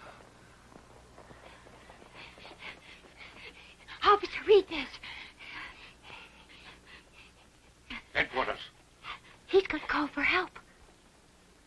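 A young boy speaks.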